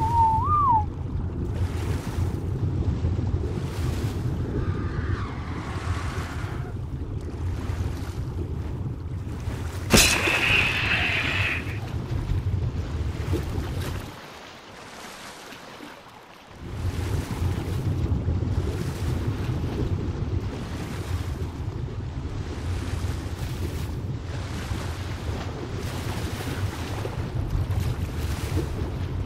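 Water rumbles in a low, muffled underwater drone.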